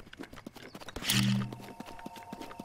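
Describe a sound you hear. A sudden magical whoosh bursts out with a low hum.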